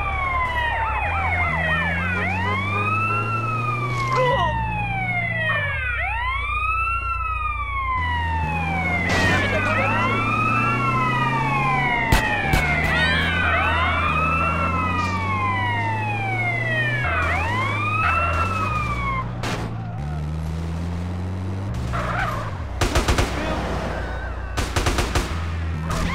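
A vehicle engine hums and revs steadily.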